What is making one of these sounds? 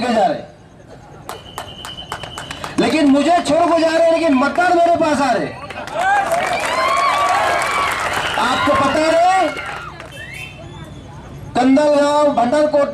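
A middle-aged man gives a forceful speech into a microphone, heard through loudspeakers outdoors with a slight echo.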